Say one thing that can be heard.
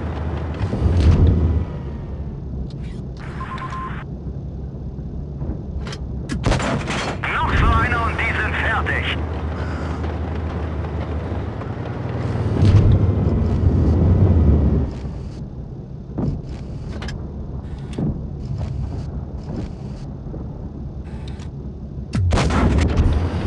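Tank cannons fire with sharp booms.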